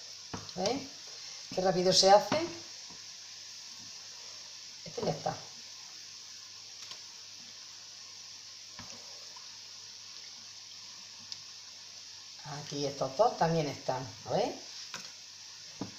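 Dough fritters sizzle in hot oil in a frying pan.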